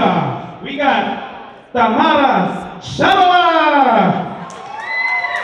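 A man announces with animation through a loudspeaker in a large echoing hall.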